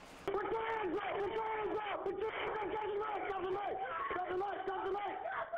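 A man shouts loudly and urgently, close by.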